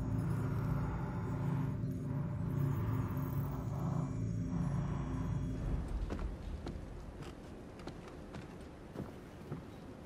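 Footsteps tap slowly across a wooden floor.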